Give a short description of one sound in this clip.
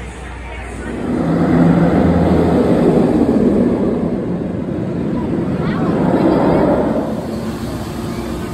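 A roller coaster train roars past on its track.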